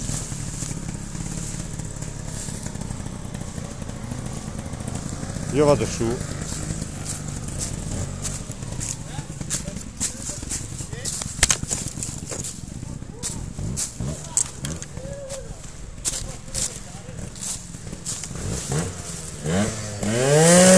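Footsteps crunch through dry leaves close by.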